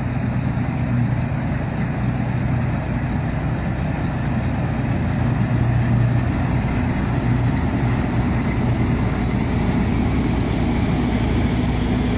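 A diesel combine harvester drones as it drives past.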